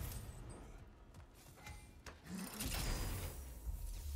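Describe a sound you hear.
A heavy chest lid creaks open.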